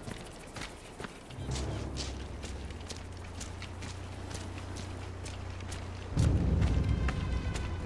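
Footsteps crunch on gravel at a steady walking pace.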